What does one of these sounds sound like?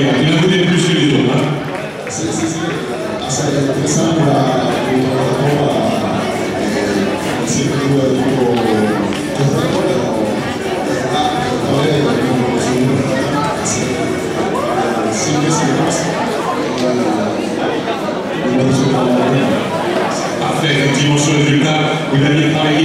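A young man answers into a microphone.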